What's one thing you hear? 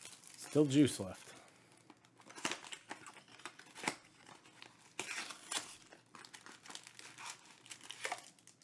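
Cardboard scrapes as a box is opened.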